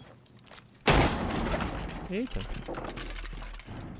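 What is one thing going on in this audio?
An explosion booms and debris clatters.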